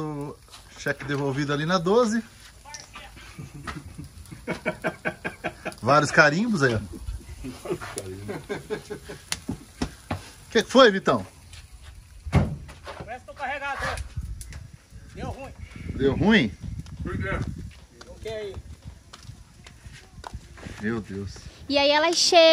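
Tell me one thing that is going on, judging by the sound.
A man talks and laughs close by.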